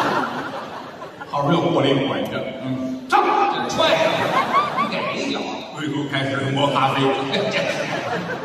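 A second middle-aged man answers through a microphone.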